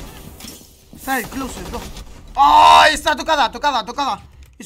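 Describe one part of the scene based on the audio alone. A young man speaks excitedly into a close microphone.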